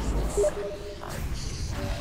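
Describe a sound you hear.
Fighting sound effects from a video game clash and burst.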